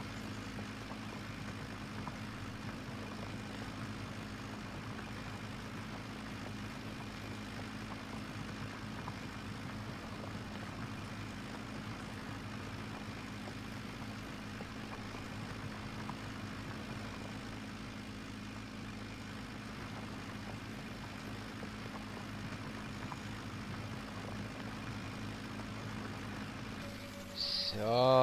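A tractor engine hums steadily at low speed.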